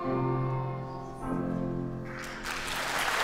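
Children sing together into a microphone.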